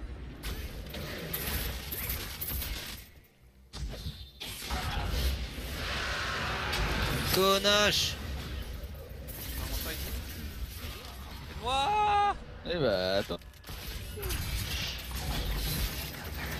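Game sound effects of spells and hits play.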